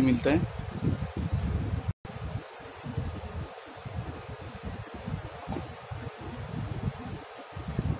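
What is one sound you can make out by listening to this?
Hands handle a small plastic gadget with soft rustles and clicks.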